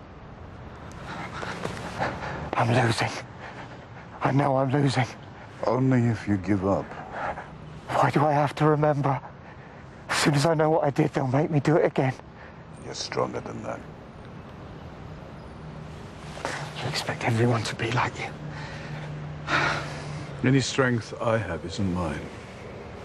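An older man speaks softly and gravely, close by.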